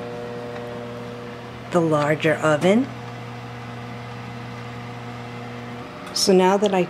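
An oven fan hums steadily.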